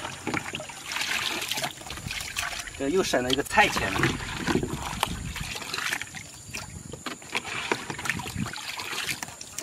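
Water pours and trickles from a basket into a tank.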